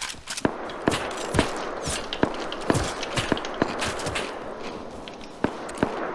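Footsteps thud on grass and stone.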